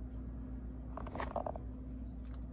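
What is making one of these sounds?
A plastic bag rustles briefly as it is dropped.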